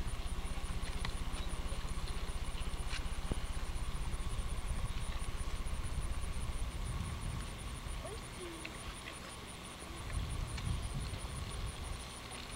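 Wind rumbles across an open field.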